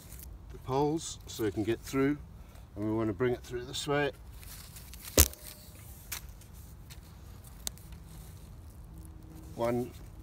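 Cord rustles as it is wound and pulled tight around sticks.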